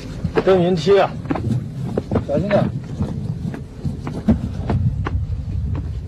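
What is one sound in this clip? Men scramble and step over loose rock.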